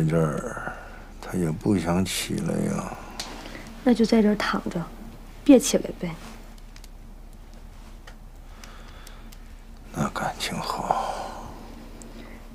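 A woman speaks softly and calmly nearby.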